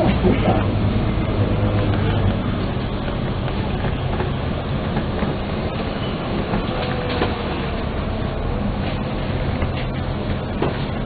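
A bus engine rumbles steadily from inside the moving bus.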